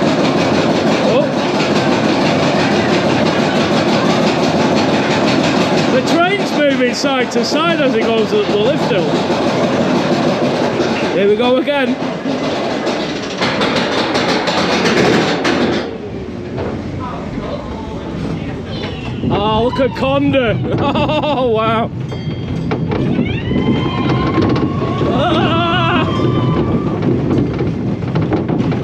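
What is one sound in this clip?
A roller coaster train rattles and rumbles loudly along its track.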